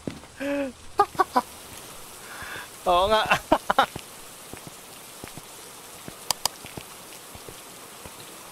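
Rain falls steadily and softly.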